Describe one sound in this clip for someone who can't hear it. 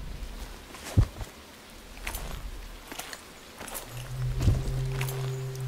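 Hands clank on a metal ladder while climbing.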